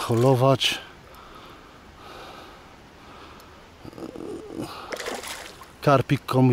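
A small lure splashes in shallow water close by.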